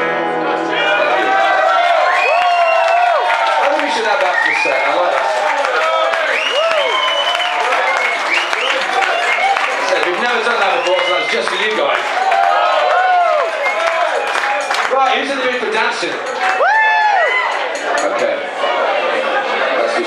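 A man sings into a microphone over a live band.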